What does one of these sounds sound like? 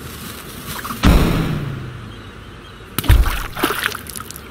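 A cartoon cannon fires with a deep boom that rumbles away.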